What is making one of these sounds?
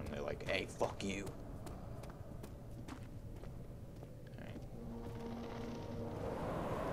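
Footsteps tap on a stone floor in an echoing hall.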